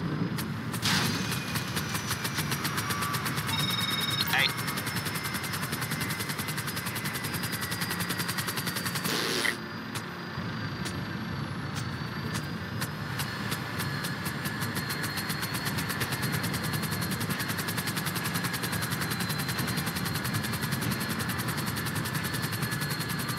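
A helicopter's rotor chops rapidly and steadily.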